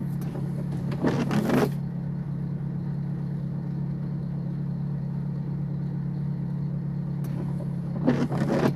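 A windshield wiper swishes across wet glass.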